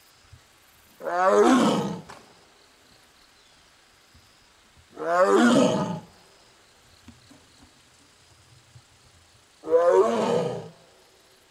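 A tiger gives loud, deep moaning calls every few seconds.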